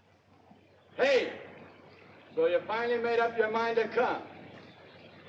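A young woman calls out loudly outdoors.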